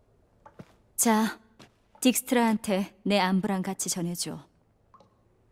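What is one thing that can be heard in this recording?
A man speaks calmly in a low, gravelly voice close by.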